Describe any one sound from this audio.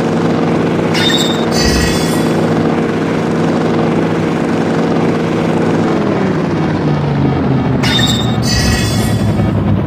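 A bright chime rings out twice.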